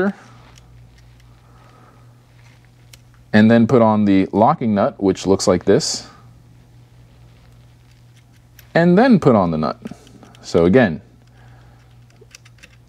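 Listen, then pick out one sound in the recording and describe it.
A plastic cap clicks and rustles softly as hands fit it over a battery terminal.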